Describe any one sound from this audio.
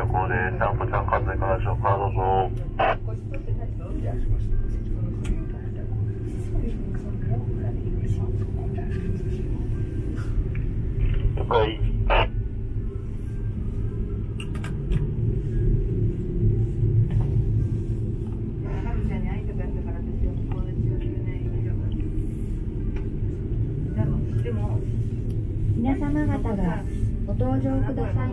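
A cable car hums and rumbles steadily as it glides along.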